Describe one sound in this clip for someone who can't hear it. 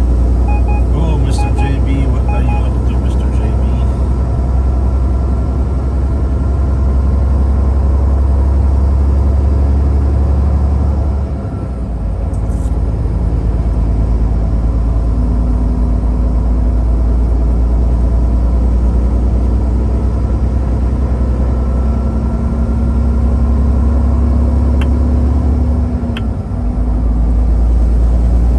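A car's engine hums steadily from inside the car.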